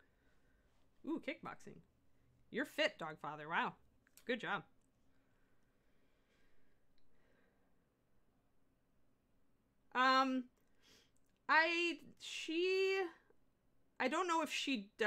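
A middle-aged woman talks calmly into a close microphone, in short bursts with pauses.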